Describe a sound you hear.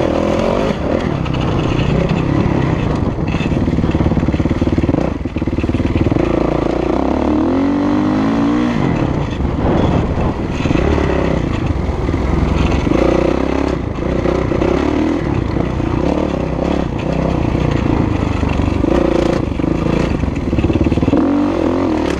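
A four-stroke 450 dirt bike revs hard and shifts through gears.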